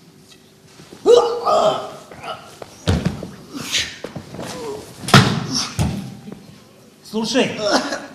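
A man shouts with agitation.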